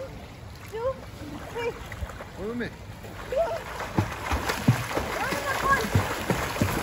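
A young girl calls out playfully.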